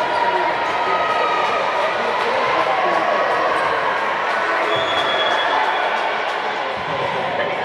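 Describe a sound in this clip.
Volleyballs thud and smack on hands and the floor.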